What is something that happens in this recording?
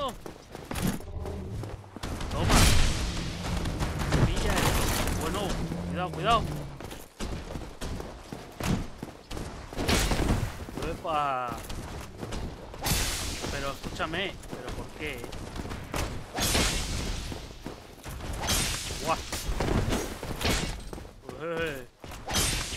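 Weapons clash and thud in a game fight.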